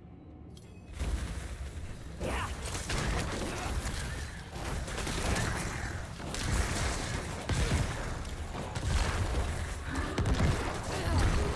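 Fighting sounds of weapons and spells clash and thud.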